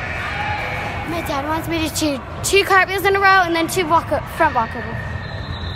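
A young girl speaks close by with animation in an echoing hall.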